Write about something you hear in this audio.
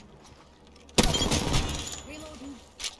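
Rapid gunshots fire in a loud burst.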